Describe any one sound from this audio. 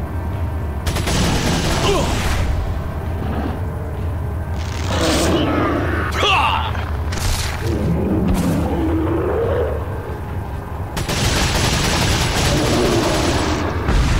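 A handgun fires in rapid shots.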